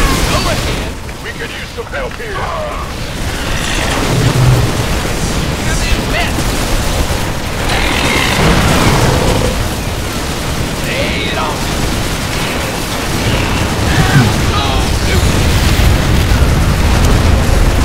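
Gunfire and explosions rattle in a game battle.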